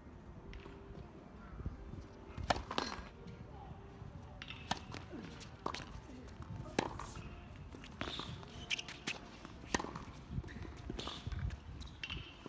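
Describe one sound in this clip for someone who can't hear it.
Rackets hit a tennis ball back and forth with sharp pops.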